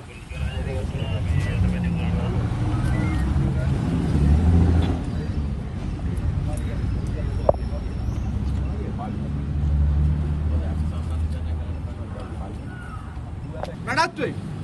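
A crowd of men talks and murmurs outdoors nearby.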